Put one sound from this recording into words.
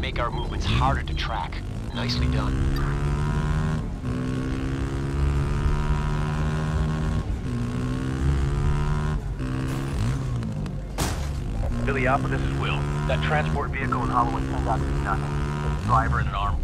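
A vehicle engine hums and revs steadily while driving.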